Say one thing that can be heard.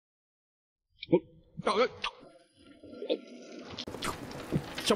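A young man eats noisily.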